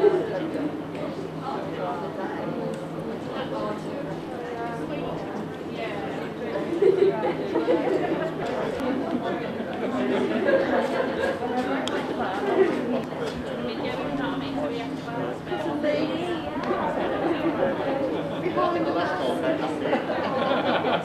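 A crowd of men and women murmurs and chats quietly nearby, outdoors.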